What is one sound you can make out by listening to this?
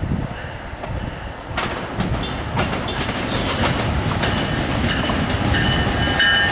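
An electric locomotive hauling a commuter train approaches, its rumble growing louder.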